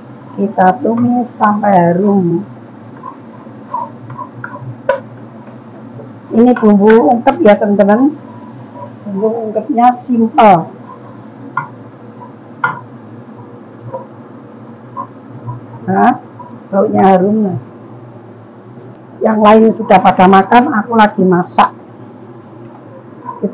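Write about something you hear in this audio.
A wooden spatula scrapes and taps against a frying pan.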